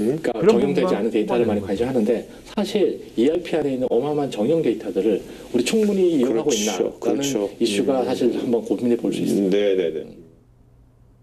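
A man speaks calmly and steadily, close to a microphone.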